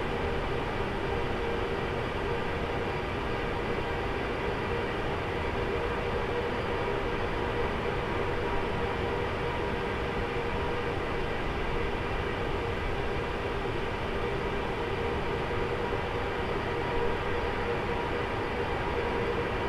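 Jet engines hum and whine steadily nearby.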